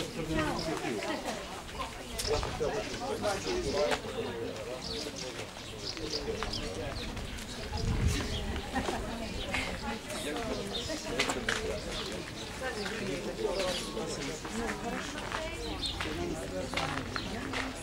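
Women talk casually nearby outdoors.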